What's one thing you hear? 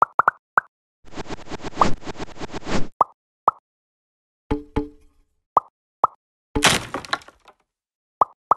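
A rattling electronic effect plays in a burst.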